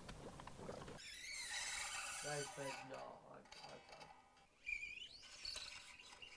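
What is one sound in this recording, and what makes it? Guitar strings are plucked and ring briefly.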